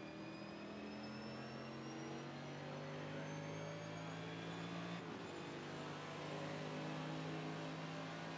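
A race car engine drones steadily at high revs.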